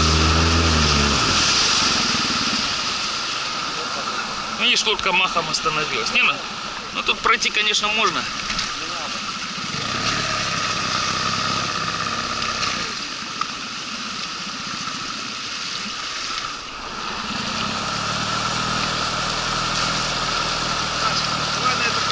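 A river rushes and gurgles close by.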